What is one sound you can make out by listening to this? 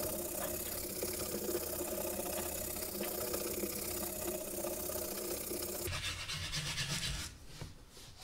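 A tool rubs steadily across a sheet of paper.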